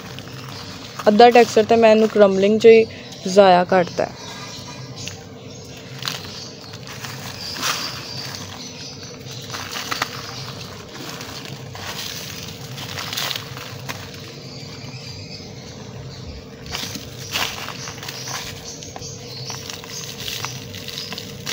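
A plastic sack rustles.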